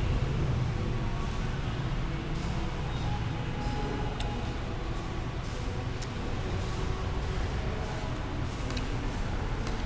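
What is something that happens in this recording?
A woman chews food close by.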